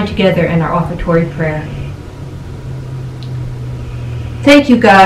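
An elderly woman speaks calmly and close to a microphone.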